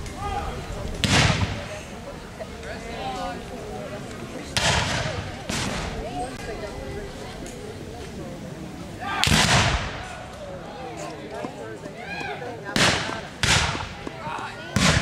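Rifles fire in loud, booming volleys outdoors, one after another.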